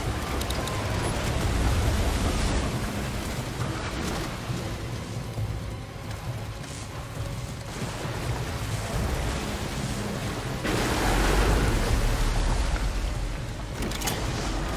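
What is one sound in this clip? Water splashes and surges loudly.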